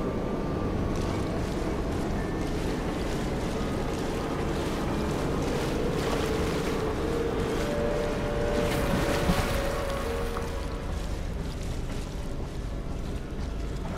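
Water sloshes and splashes as someone wades slowly through it.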